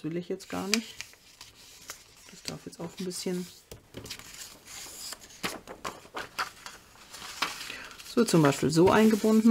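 Paper rustles and slides against paper.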